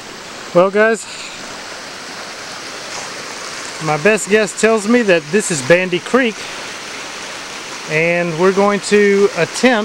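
A shallow stream babbles and trickles over stones.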